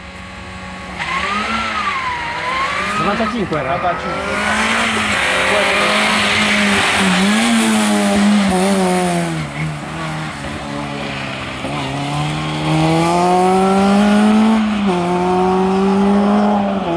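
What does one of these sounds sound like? A rally car engine revs hard and its pitch rises and falls as the car races past.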